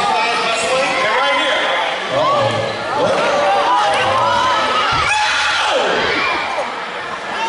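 A crowd of children cheers and screams loudly in a large echoing gym.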